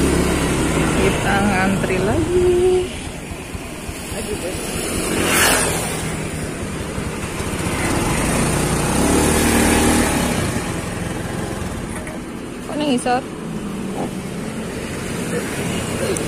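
A scooter engine idles close by.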